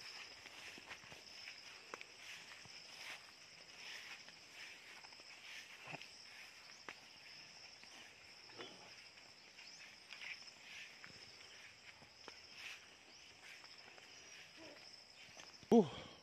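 A man's footsteps crunch softly on dry ground.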